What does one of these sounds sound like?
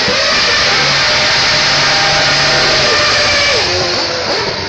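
Tyres screech and squeal on the tarmac.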